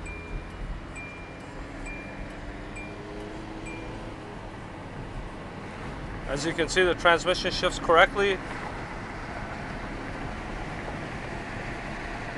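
A car engine hums steadily and rises in pitch as the car speeds up.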